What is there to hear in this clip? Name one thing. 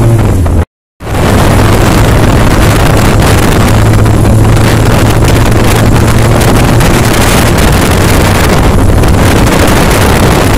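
Wind roars loudly past a moving motorcycle.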